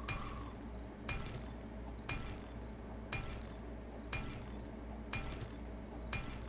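A pickaxe strikes stone with sharp, regular knocks about once a second.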